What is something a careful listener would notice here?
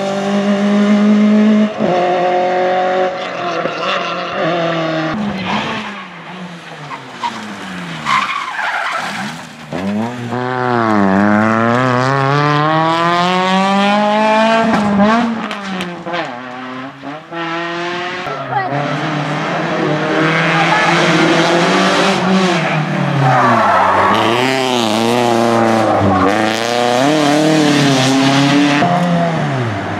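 Rally car engines roar and rev hard as cars speed past.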